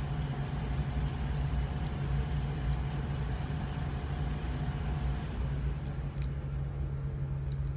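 Small tool clicks and scrapes lightly against a small object close by.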